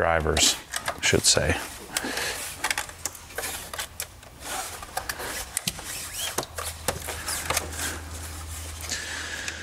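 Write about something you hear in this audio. Light knocks and clicks come from an object being handled on a metal worktop.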